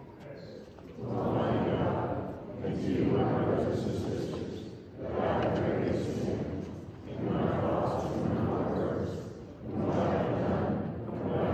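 A group of men and women chat and greet one another in a large echoing hall.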